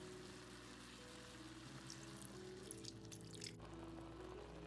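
Water pours into a hot pan.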